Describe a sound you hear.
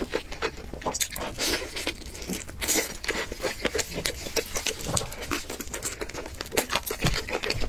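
A young man chews food noisily and wetly close to a microphone.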